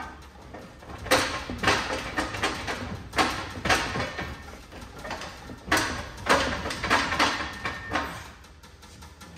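Hands rummage and rattle parts inside a car's engine bay.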